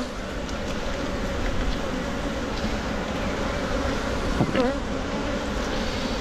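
A wooden hive frame scrapes and knocks as it is pried loose and lifted.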